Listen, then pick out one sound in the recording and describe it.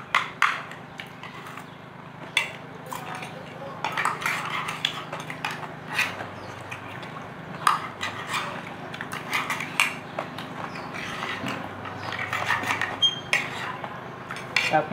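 Metal spoons and forks clink against plates.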